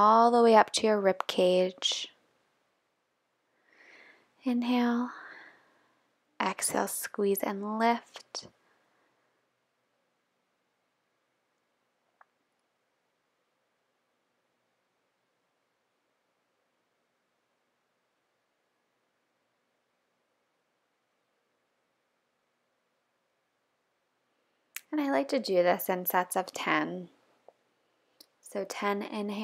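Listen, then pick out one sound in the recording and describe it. A young woman talks calmly close by, in short bursts with long pauses.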